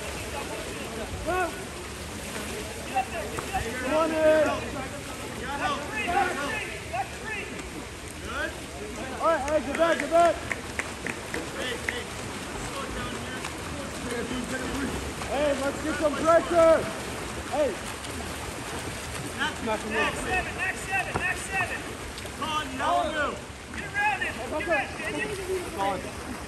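Players splash and thrash in the water outdoors.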